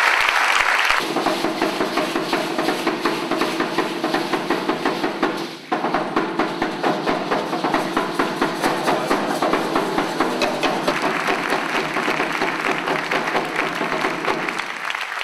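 A drum beats in a steady rhythm.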